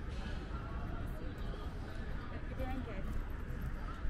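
Young women talk casually as they pass close by.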